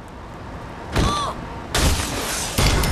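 A truck slams into a person with a heavy crash.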